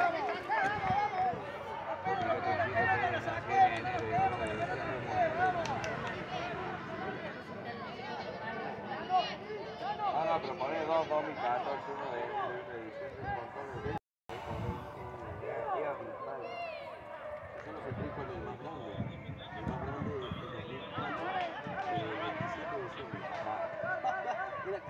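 A crowd of spectators nearby shouts and cheers with excitement.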